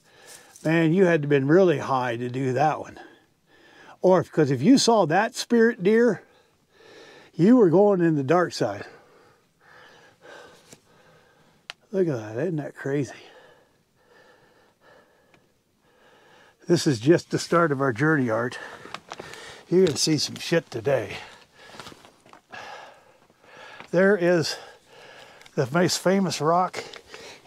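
A man speaks calmly close by, in short phrases with pauses.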